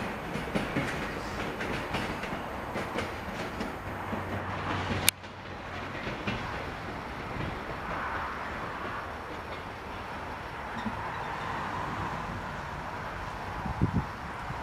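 A train rumbles away along the tracks and slowly fades.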